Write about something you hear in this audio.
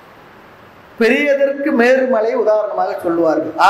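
An elderly man chants in a steady voice close to a microphone.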